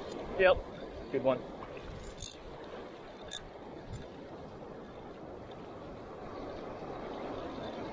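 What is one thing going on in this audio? A fishing reel clicks as a hand turns it.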